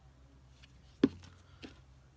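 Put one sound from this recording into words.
A plastic bottle knocks on a table.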